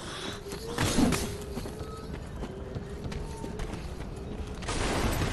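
Armoured footsteps thud and clink quickly on hard ground.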